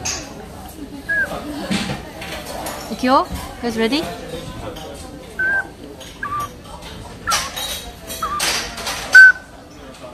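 An ocarina plays a few short, high notes.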